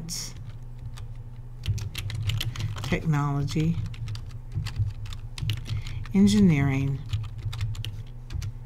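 Keys on a keyboard click rapidly as someone types.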